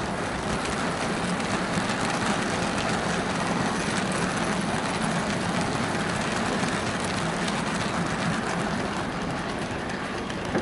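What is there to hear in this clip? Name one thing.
Model railway wagons rattle and clatter steadily along the track.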